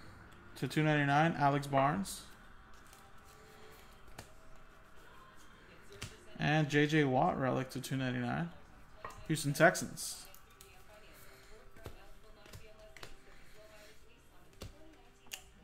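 Trading cards rustle and slide against each other in a hand.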